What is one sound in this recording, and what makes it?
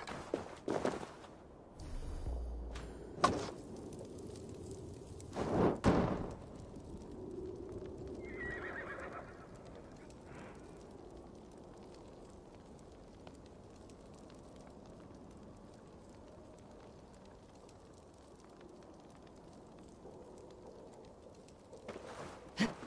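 Hands and boots knock and scrape against wooden planks while climbing.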